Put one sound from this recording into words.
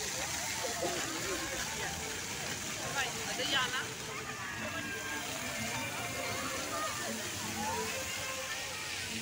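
A crowd of people chatter all around outdoors.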